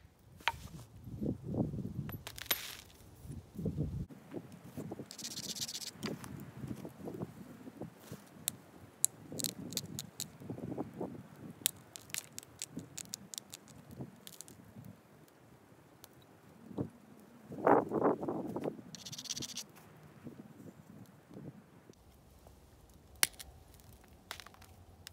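A knife scrapes and shaves a piece of bone with short, rasping strokes.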